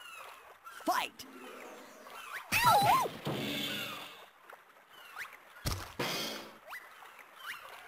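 Cartoon fight sounds whoosh and thud.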